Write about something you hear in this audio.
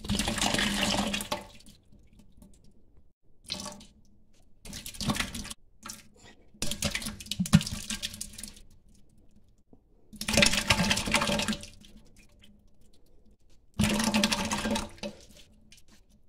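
Liquid pours from a jar into a pot in short splashing bursts.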